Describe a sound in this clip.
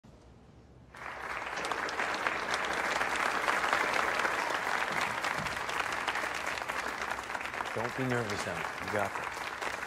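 A large audience applauds and cheers loudly in a big hall.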